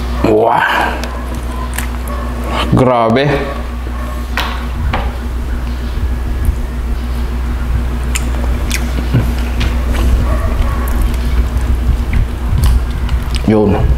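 Fingers pick and tear at fish flesh with soft wet clicks.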